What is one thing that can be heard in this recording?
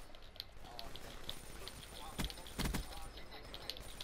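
Gunfire rattles in short rapid bursts.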